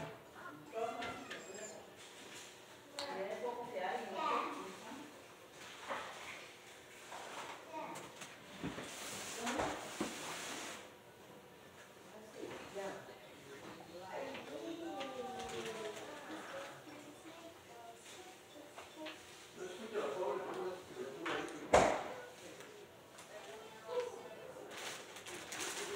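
A baby babbles and coos nearby.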